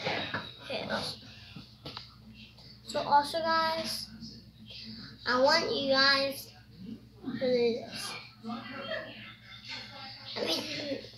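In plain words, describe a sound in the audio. A young boy talks close by, with animation and pauses.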